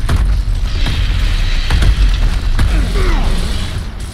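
Debris clatters and scatters.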